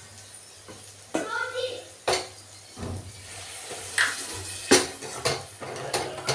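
Liquid pours into a pan.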